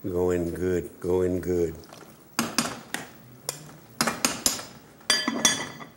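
A spoon scrapes and stirs inside a metal pot.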